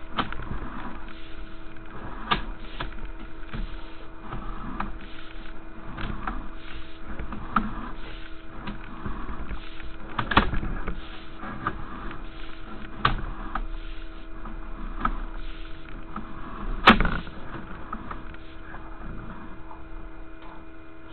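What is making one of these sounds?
A small motor hums steadily inside a pipe.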